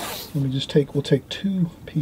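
Masking tape is pressed down onto paper.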